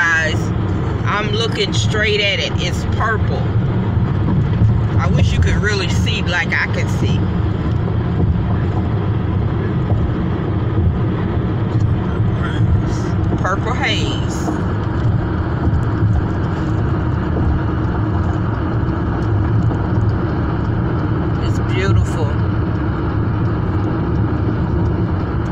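Road noise rumbles steadily from inside a moving car.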